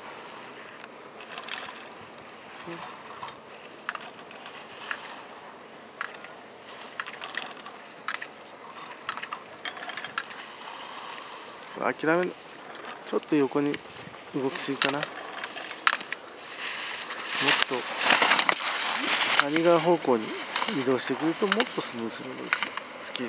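Skis scrape and hiss across hard-packed snow as a skier carves turns.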